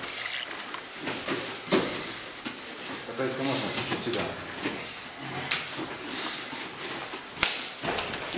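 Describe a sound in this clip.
Bare feet shuffle and slap on a mat.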